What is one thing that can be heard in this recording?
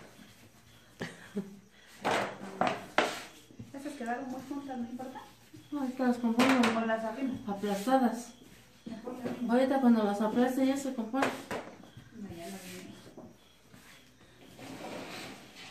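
Dough thumps and slaps on a wooden board.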